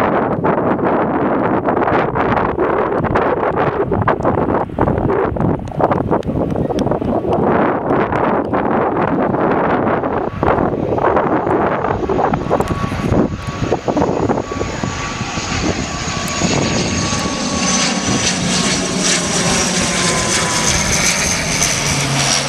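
A propeller plane flies in low overhead, its engines droning and whining louder as it nears.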